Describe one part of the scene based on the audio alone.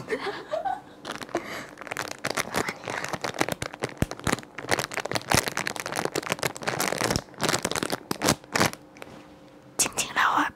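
A plastic snack packet crinkles.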